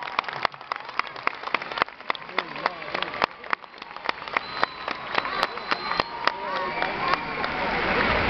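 A large crowd claps in rhythm outdoors.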